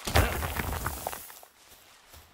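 A pickaxe strikes rock with heavy blows.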